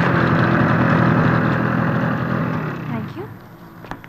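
A scooter engine hums steadily nearby.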